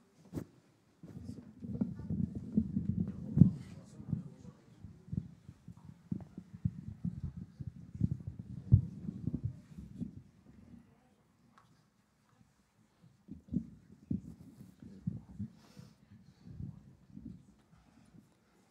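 Low bumping and rustling noises sound close to a microphone.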